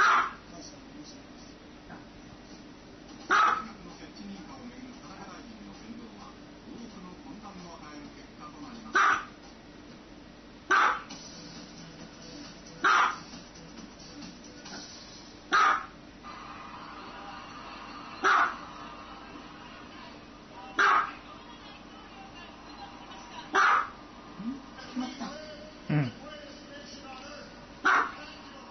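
A small fluffy dog barks in sharp, high yaps, spaced a few seconds apart.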